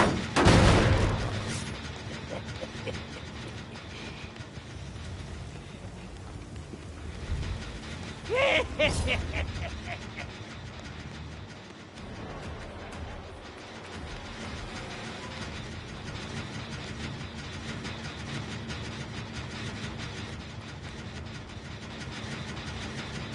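A machine rattles and hums nearby.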